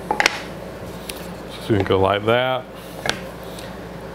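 A mallet taps on wood.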